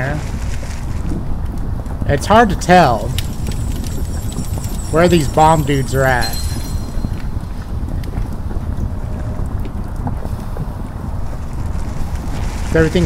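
Molten lava rumbles and roars steadily.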